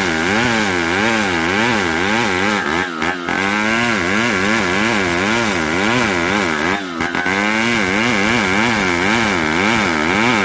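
A gasoline chainsaw rips lengthwise through a timber beam under load, with its engine revs rising and falling.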